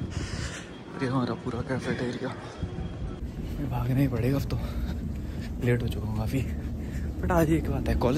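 A young man talks close by with animation.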